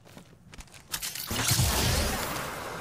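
A swirling whoosh rushes loudly.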